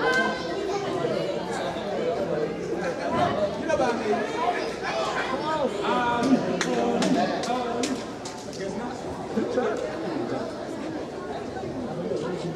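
A referee slaps the mat loudly while counting.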